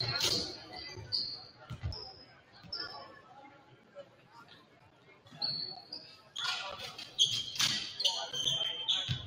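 Young people chatter and call out in a large echoing hall.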